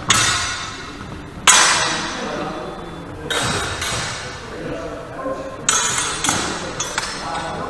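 Steel swords clash and clang sharply, ringing in a large echoing hall.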